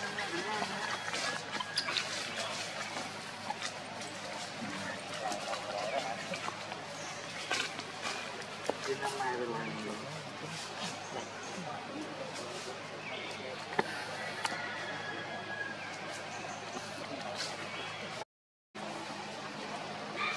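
Monkeys climb and rustle through leaves and branches.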